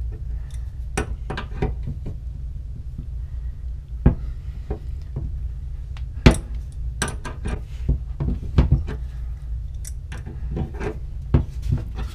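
Metal wrenches clink and scrape against a pipe fitting.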